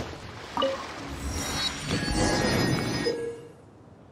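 A waypoint unlocks with a bright chime.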